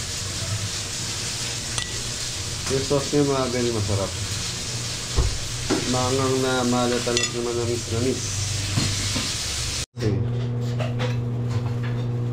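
A metal spoon clinks and scrapes against a plate.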